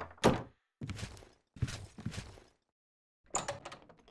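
A wooden door swings shut with a thud.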